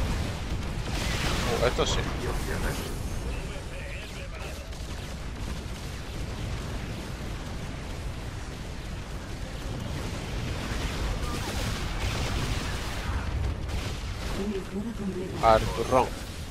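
Rapid gunfire rattles in a battle.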